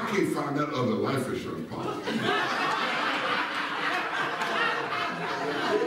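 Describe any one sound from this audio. A man speaks to an audience in a large echoing hall.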